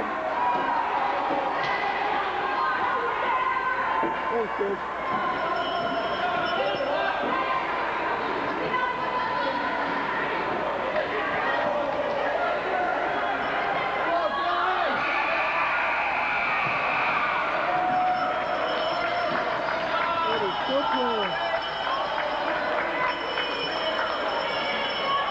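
Many voices of spectators and young players chatter and shout in a large echoing rink.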